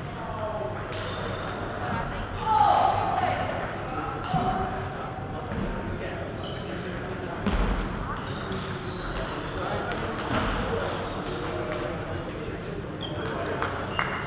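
A ping pong ball clicks on a table and paddles.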